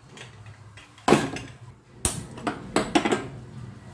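A metal lid clanks onto a pot.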